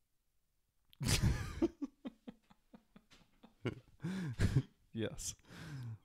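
A young man laughs into a close microphone.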